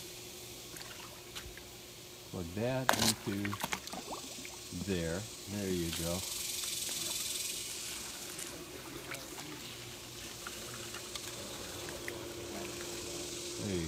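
Water splashes and sloshes against hands.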